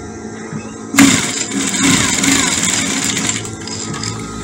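A sewing machine whirs as it stitches fabric.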